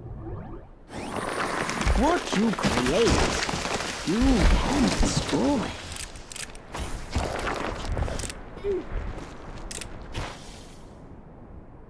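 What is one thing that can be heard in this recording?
A tree crashes down with a loud rumble of falling earth.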